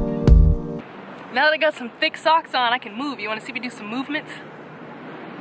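A young woman speaks cheerfully close by.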